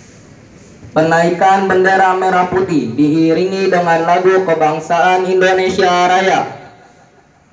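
A large crowd of young people sings together loudly outdoors.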